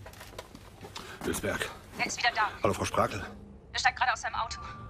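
A man speaks into a telephone handset.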